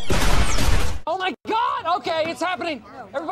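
A man shouts excitedly.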